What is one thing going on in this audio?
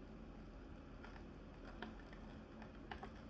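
Chopsticks click against a foil tray.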